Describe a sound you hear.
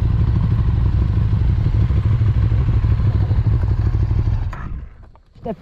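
Wind roars past while riding a motorcycle.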